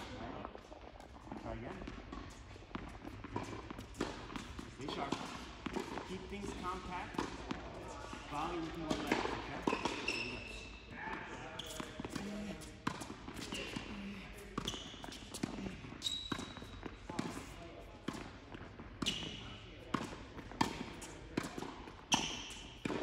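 Tennis balls pop off rackets in a large echoing hall.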